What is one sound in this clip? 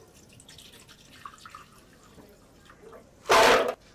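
Milk splashes as it is poured into a plastic jug.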